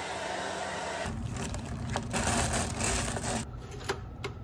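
A plastic bread bag rustles and crinkles.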